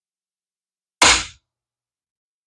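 Small metal parts click.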